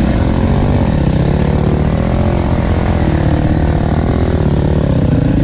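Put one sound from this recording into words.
Another dirt bike engine buzzes nearby.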